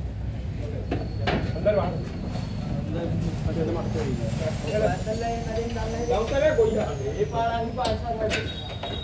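Young men call out to each other nearby.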